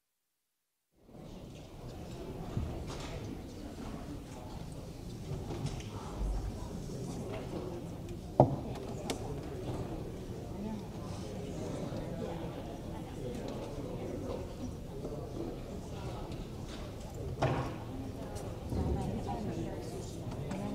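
Many people murmur and talk in a large room.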